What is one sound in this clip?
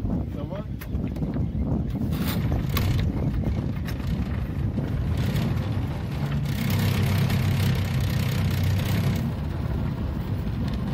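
Choppy water laps against a boat's hull.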